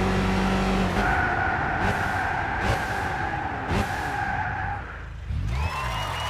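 A car engine drops in pitch as the car brakes and slows down.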